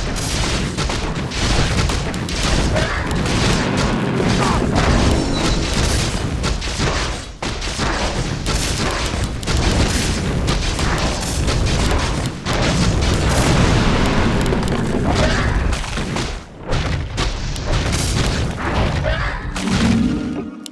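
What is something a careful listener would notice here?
Magic spells crackle and burst during a fantasy battle.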